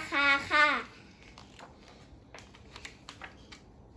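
Book pages rustle softly.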